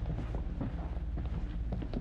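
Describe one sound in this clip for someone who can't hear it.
Boots thud on a wooden floor as several people walk.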